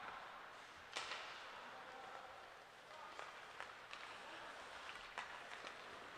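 Hockey sticks clack sharply against a puck in a large echoing rink.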